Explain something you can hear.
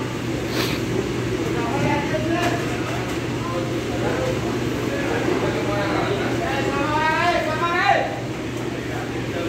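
Many people talk at once, in a low, steady murmur.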